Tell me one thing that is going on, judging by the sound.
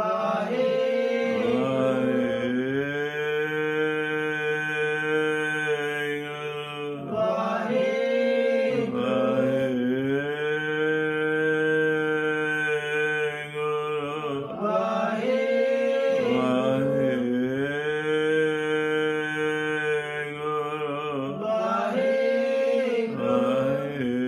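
An elderly man chants slowly in long, drawn-out tones close by.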